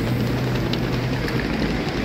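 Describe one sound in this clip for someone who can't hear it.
Wheels of a suitcase roll over paving stones.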